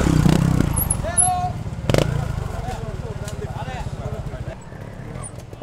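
A motorbike engine putters and revs close by.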